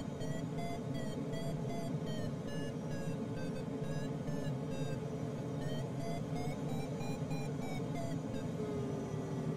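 A flight instrument beeps in quick repeated tones that shift up and down in pitch.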